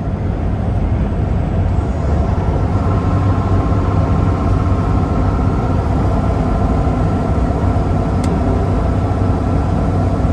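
A truck engine drones steadily from inside the cab.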